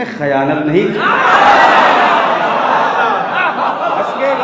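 A crowd of men calls out and cheers together.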